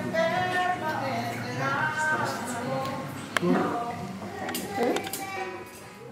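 Plates and cutlery clink.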